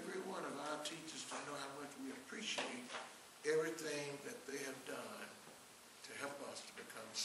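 An elderly man preaches with animation through a microphone in a reverberant hall.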